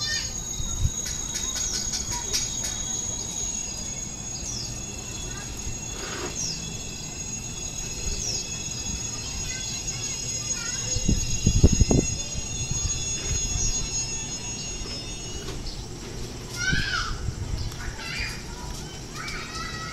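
An electric train approaches along the tracks with a low rumble.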